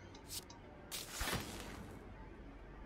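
A game sound effect whooshes as a card is played.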